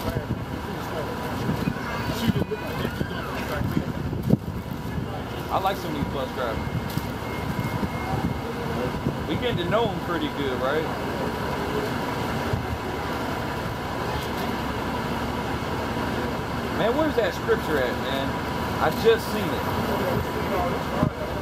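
City traffic rumbles steadily in the background.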